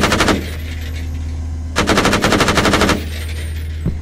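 Heavy guns fire in rapid, loud bursts.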